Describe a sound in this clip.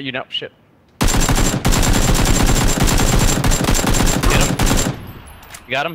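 A rifle fires rapid, loud bursts of shots.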